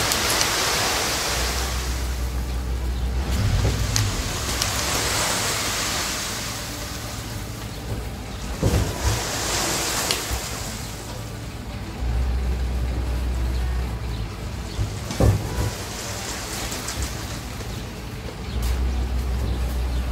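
Gravel slides and pours from a tipping truck bed.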